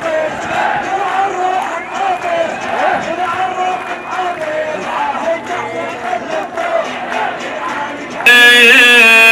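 A large crowd chants and sings together outdoors.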